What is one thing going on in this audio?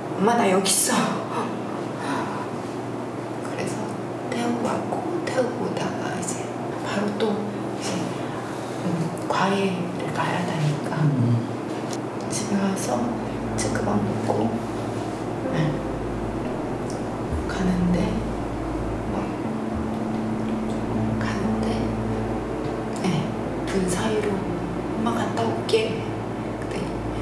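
A woman speaks calmly and at length, close to a microphone.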